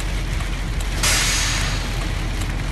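Air brakes release with a sharp hiss.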